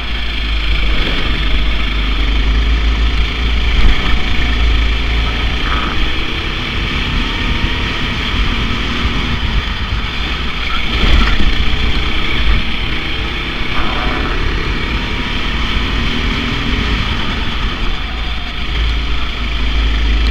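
Other kart engines whine nearby.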